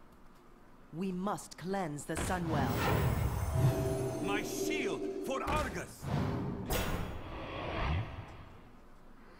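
Game sound effects clash and chime.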